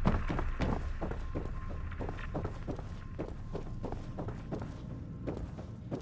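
Footsteps tread across a wooden floor at a steady walking pace.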